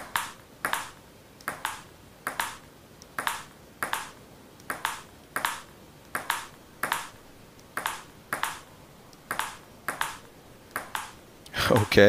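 A ping pong ball clicks back and forth off paddles and a table in a quick, steady rhythm.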